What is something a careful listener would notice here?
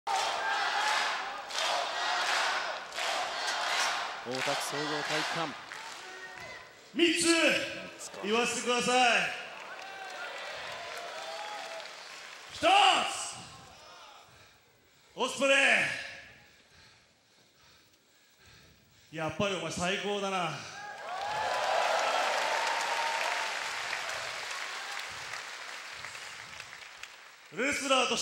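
A large crowd cheers and chants.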